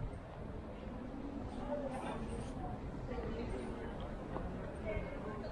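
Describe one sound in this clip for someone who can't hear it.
Distant voices of passers-by murmur outdoors.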